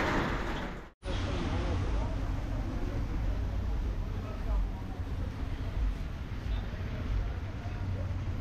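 Cars hiss past on a wet road.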